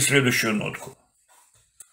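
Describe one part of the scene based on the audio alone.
A young man speaks briefly through a laptop speaker on an online call.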